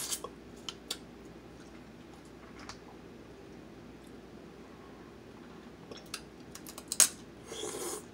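Crab shells crack and snap close to a microphone.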